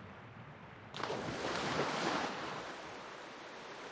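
Water splashes and rushes as a swimmer breaks the surface.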